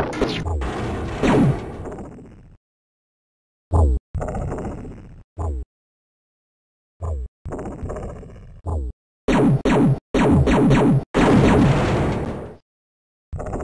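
Explosions boom and crackle in quick bursts.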